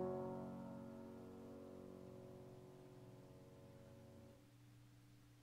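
A piano plays a chord that rings out and fades in a quiet hall.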